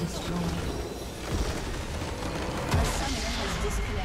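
A large crystal structure shatters with a loud crash.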